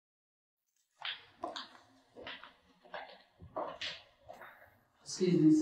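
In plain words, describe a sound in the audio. Shoes click on a hard floor as a woman walks.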